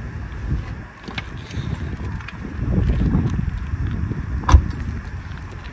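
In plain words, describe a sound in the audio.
A baby car seat knocks and clicks as it is lifted out of a car.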